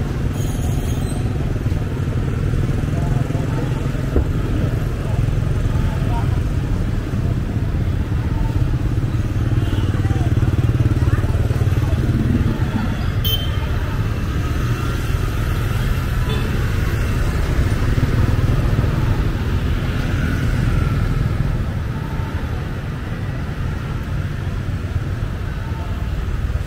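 Motorbike engines hum and buzz past on a busy street.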